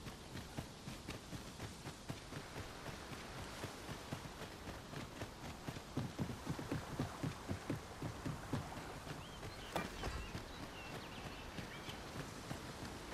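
Footsteps run steadily across the ground.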